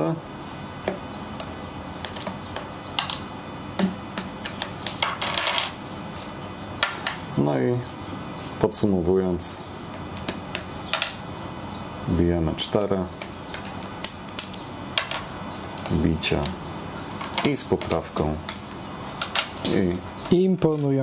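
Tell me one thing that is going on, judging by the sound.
Plastic checkers click and tap on a board.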